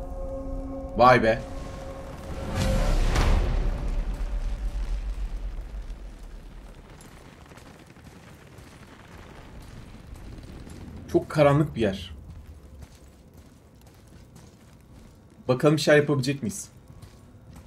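A young man speaks in short bursts into a close microphone.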